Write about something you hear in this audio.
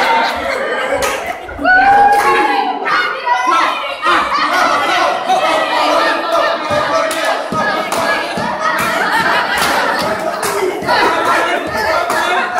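A crowd of men cheers and shouts loudly nearby.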